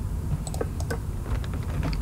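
A lever clicks.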